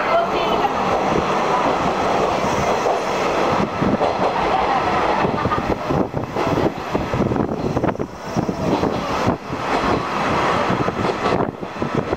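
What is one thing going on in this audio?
A small open train rumbles and rattles steadily along its track.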